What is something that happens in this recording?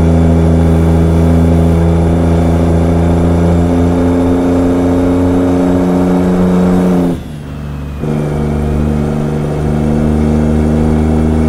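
A heavy truck engine drones steadily, dropping briefly in pitch and loudness before pulling again.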